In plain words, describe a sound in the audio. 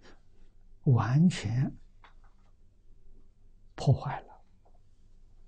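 An elderly man speaks calmly into a close microphone, in short bursts with long pauses.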